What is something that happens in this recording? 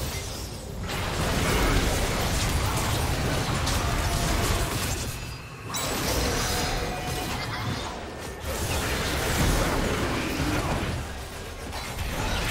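Magic spells crackle and blast during a fast fight.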